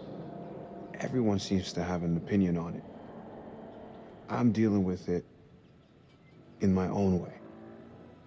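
A young man answers quietly and hesitantly, close by.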